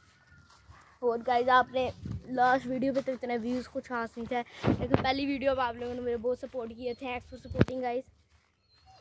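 A boy talks with animation, close by.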